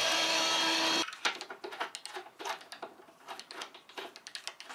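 A screwdriver clicks and scrapes as it turns a screw.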